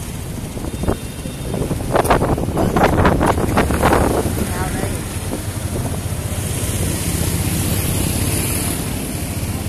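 Motorbike engines hum and pass close by.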